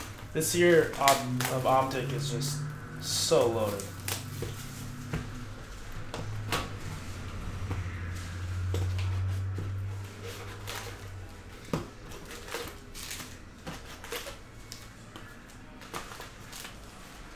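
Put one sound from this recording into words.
Foil card packs crinkle and rustle as hands handle them.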